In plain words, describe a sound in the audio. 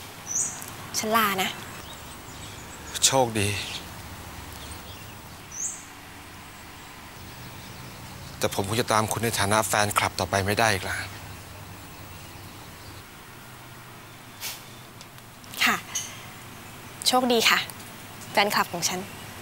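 A young woman speaks calmly and cheerfully nearby.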